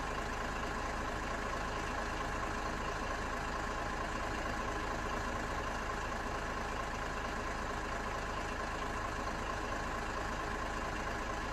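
A truck's diesel engine idles with a steady low rumble.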